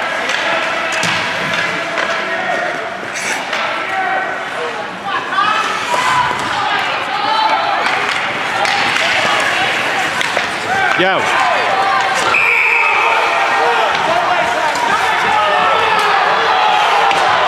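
A crowd of spectators cheers and shouts in an echoing rink.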